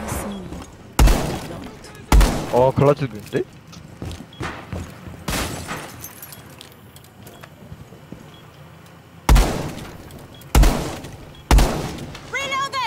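Gunshots bang out in short sharp bursts.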